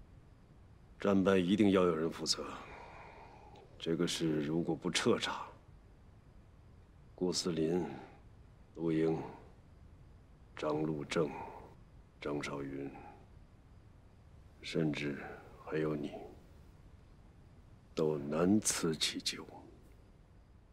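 A middle-aged man speaks calmly in measured phrases.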